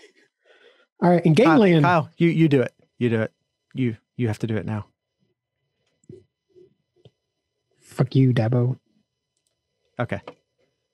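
A young man talks and laughs into a microphone over an online call.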